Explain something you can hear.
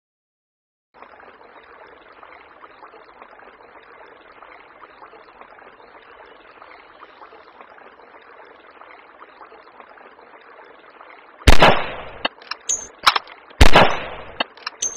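A river rushes steadily.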